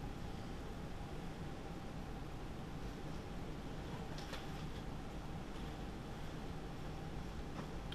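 A pen scratches faintly on paper.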